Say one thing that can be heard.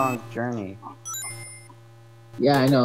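A bright electronic chime rings as rings are collected.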